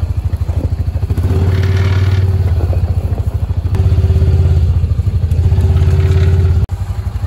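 A small off-road vehicle's engine rumbles and chugs steadily close by.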